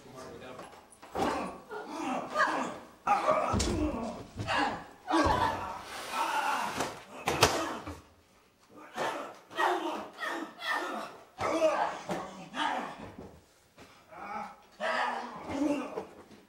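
Heavy blows and bodies thud during a scuffle.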